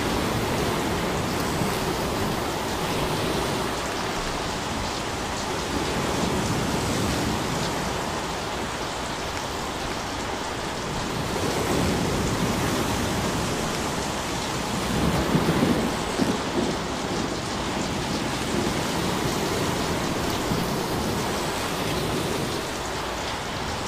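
Small waves break and wash up on a shore in steady, rolling surges.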